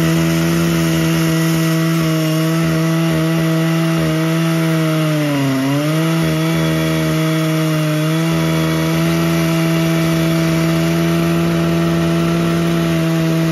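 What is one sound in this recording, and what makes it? A chainsaw roars loudly and steadily while cutting through a log, bogging down briefly under load.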